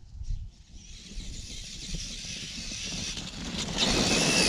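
A small remote-control car's electric motor whines louder as it approaches.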